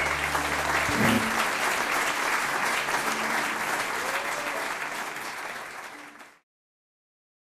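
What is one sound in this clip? An audience claps and cheers, then the applause fades away.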